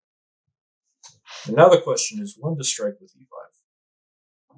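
A young man speaks calmly into a headset microphone.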